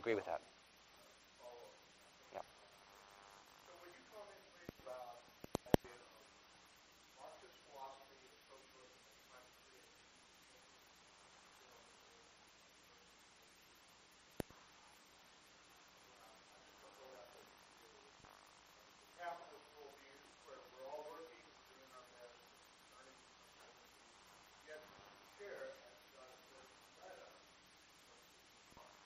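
A middle-aged man speaks calmly through a microphone in a large room, with pauses.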